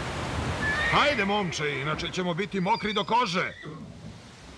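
A man speaks anxiously.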